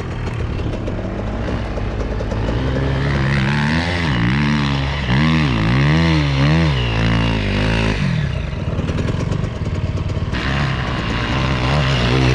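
A dirt bike engine revs hard close by, rising and falling in pitch.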